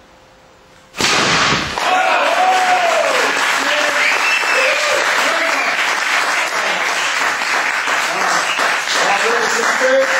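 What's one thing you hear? A man claps his hands repeatedly.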